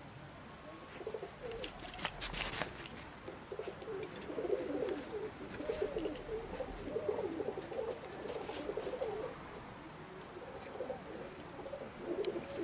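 A flock of birds calls overhead.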